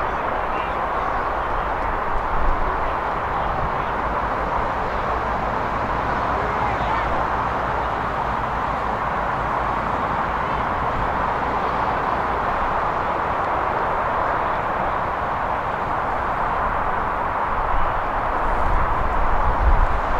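Wind blows across an open field, buffeting the microphone.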